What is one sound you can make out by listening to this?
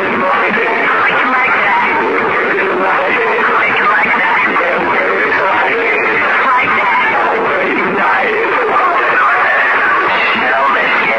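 A young man talks with animation close to the microphone.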